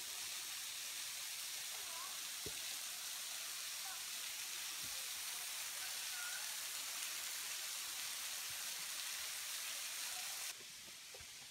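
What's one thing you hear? A waterfall splashes steadily onto rocks nearby.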